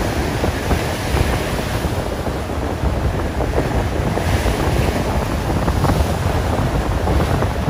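Strong wind gusts and rumbles outdoors.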